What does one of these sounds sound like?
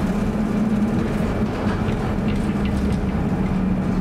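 A bus passes close by.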